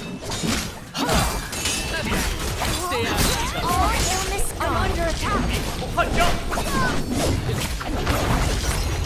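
Blades clash and slash in a fast fight.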